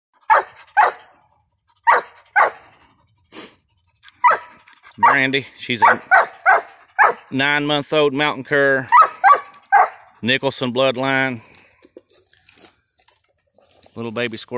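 A dog barks sharply again and again close by.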